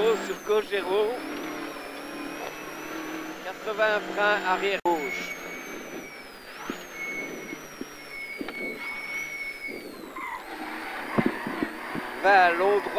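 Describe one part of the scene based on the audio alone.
A man reads out quickly over a helmet intercom.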